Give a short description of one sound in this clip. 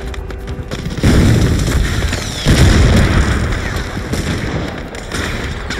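Loud explosions blast and rumble nearby.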